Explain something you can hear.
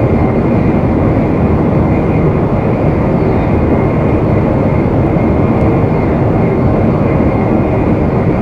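A fast train rumbles steadily through a tunnel.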